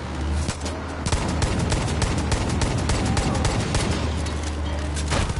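A pistol fires in rapid shots.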